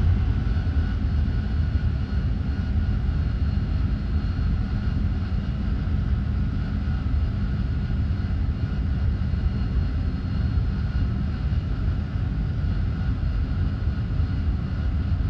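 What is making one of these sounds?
A jet engine roars steadily with a low rumble and a thin whine.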